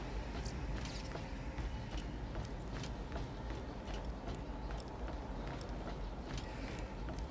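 Footsteps thud steadily on a metal floor.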